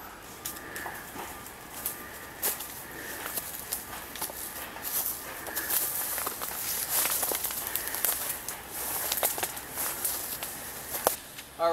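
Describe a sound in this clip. Footsteps crunch on dry twigs and brush.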